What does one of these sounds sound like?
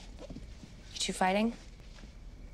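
A young woman says a few words briefly.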